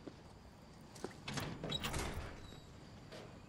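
A metal gate latch clanks and rattles.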